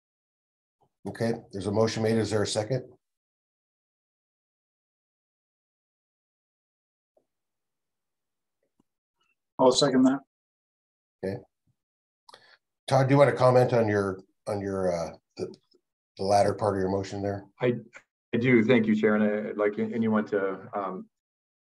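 A middle-aged man speaks calmly over an online call, pausing between phrases.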